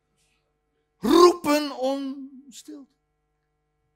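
An older man exclaims loudly into a microphone, his voice rising and falling in pitch.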